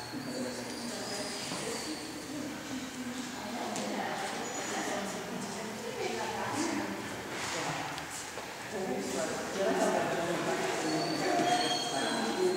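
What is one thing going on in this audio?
A woman gives commands to a dog, her voice echoing in a large hall.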